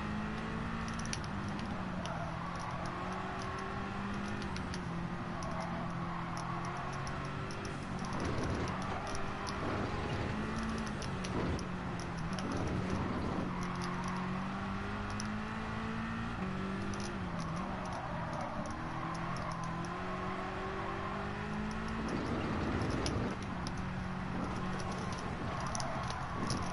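A racing car engine roars steadily, rising and falling in pitch as gears shift.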